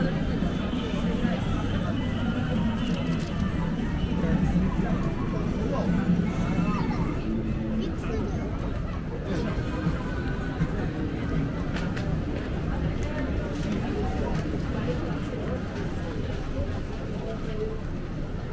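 A busy crowd murmurs with many voices of men and women nearby.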